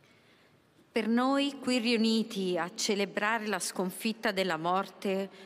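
A woman reads aloud calmly into a microphone in a large echoing space.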